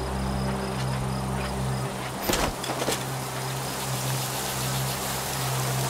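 Dry grass rustles as someone pushes through it.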